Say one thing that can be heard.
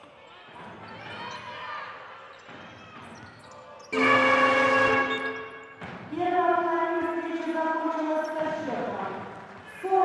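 A crowd murmurs and cheers in an arena.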